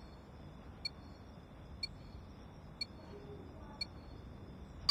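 A countdown timer beeps once a second.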